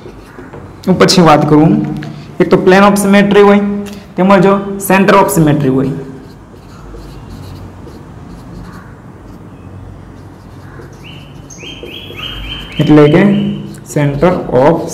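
A young man speaks clearly and steadily.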